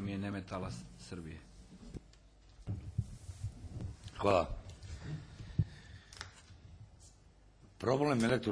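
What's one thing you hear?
A man speaks into a microphone at a measured pace, heard through a loudspeaker in a room.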